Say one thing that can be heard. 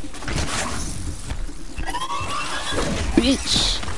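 Arrows strike a metal creature with clanging hits.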